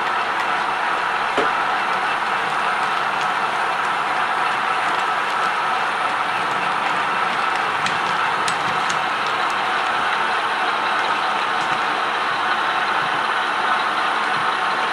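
A model train rumbles and whirs steadily along its track.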